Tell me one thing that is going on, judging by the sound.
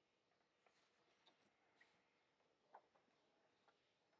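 A sheet of paper rustles as it is pulled away.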